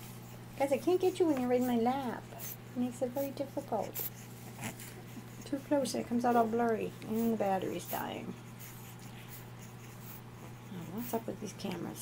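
A puppy chews and nibbles on a finger.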